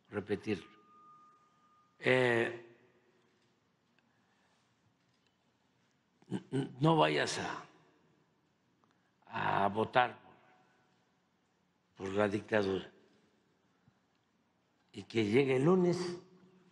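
An elderly man speaks slowly and deliberately into a microphone, with long pauses between phrases.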